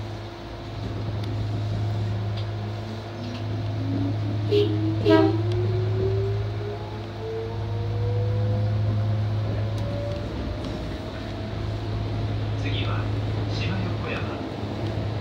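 A train hums steadily as it runs along the track.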